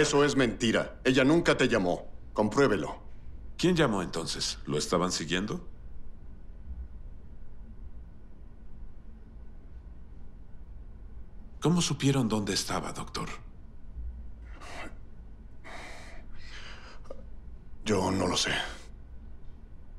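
A second man answers in a low, strained voice.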